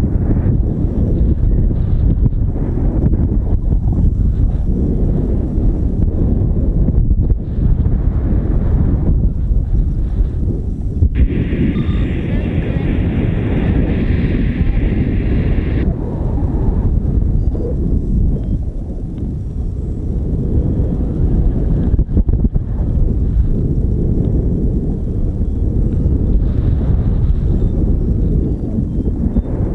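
Strong wind rushes and buffets loudly past, outdoors high in the air.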